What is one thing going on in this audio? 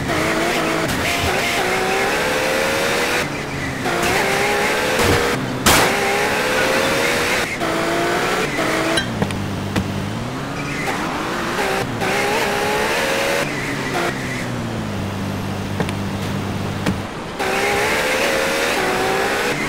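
A car engine revs and whines.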